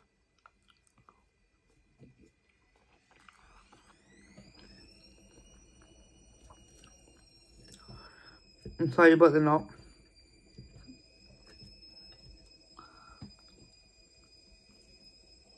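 A woman chews food noisily.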